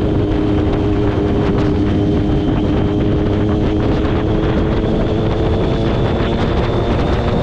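A motorcycle engine hums steadily up close at speed.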